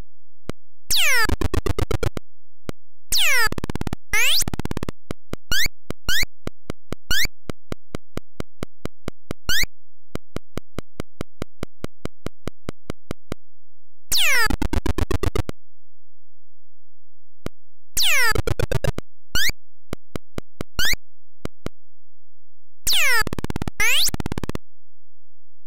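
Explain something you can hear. Short electronic tones sweep down in pitch in quick bursts.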